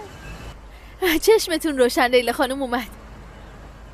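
A young woman speaks happily and close by.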